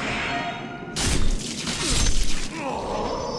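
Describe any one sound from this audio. A sword strikes an enemy with a sharp clash.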